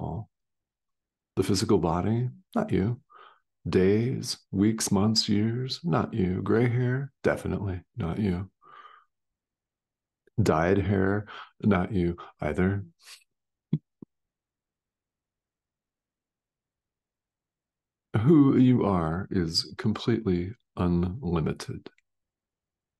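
A middle-aged man speaks calmly and close up over an online call.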